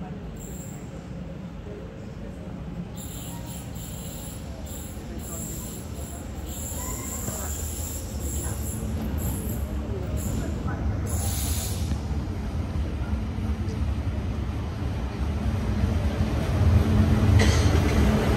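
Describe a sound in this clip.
A train approaches with a low rumble that grows steadily louder.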